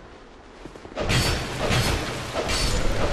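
Loud clashing blows ring out in a fight.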